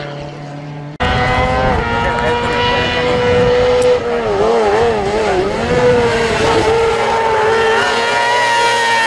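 A buggy's engine buzzes loudly and revs through a bend.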